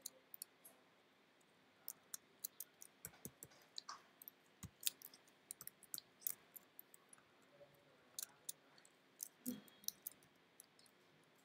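Keys click in quick bursts on a computer keyboard.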